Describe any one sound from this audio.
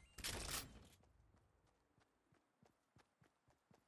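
Footsteps patter quickly on grass in a video game.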